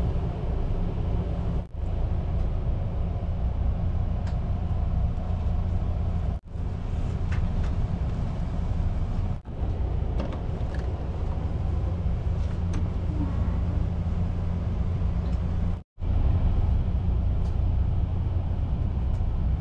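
A train's interior hums with a steady low rumble.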